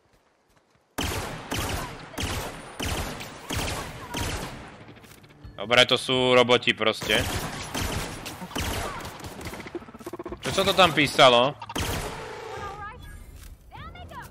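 A gun fires shot after shot in quick bursts.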